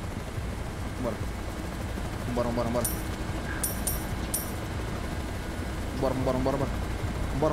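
A young man speaks into a close microphone in short bursts.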